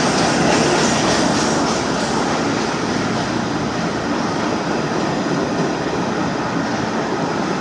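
A subway train rumbles and clatters loudly along the tracks, echoing in a tunnel.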